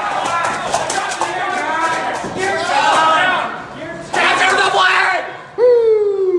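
Men shout and call out excitedly nearby in a large echoing hall.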